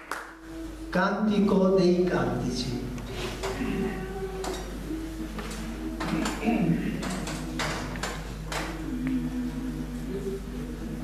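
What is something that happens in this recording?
A men's choir sings together in a reverberant hall.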